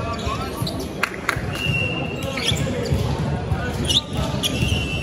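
A volleyball is struck in a large echoing hall.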